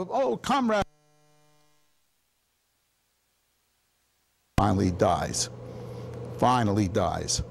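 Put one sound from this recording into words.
An elderly man lectures through a microphone, pausing now and then.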